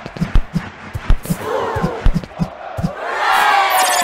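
A ball is kicked with quick thumps.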